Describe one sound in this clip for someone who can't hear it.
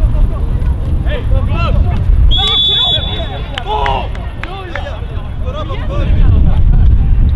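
Men shout to each other in the distance across the field.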